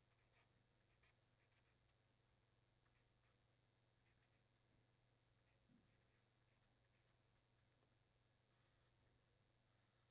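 A felt-tip marker squeaks and scratches softly as it writes on a board.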